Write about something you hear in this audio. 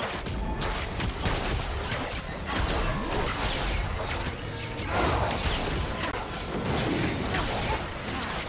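Game combat hits thud and clang.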